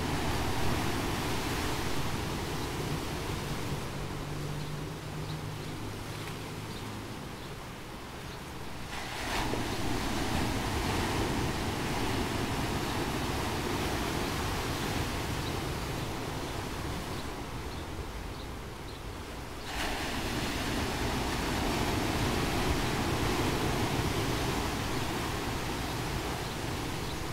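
Foaming surf hisses and drains back between stones.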